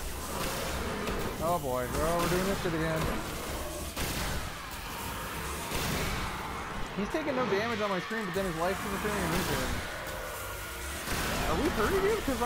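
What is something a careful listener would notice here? A futuristic energy weapon fires with crackling electric blasts.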